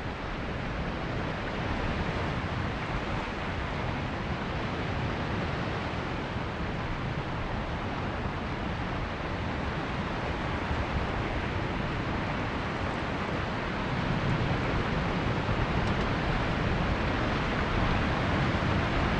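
A jet engine roars steadily at idle.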